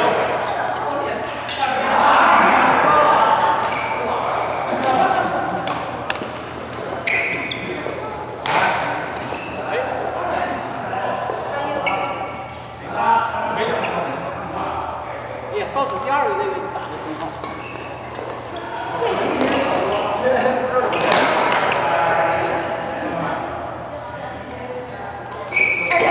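Adults talk and call out in the distance.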